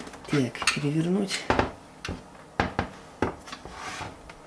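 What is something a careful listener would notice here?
Metal cans knock and bump as they are handled on a table.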